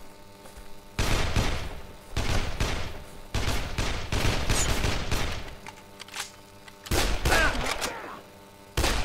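A pistol fires repeated loud shots.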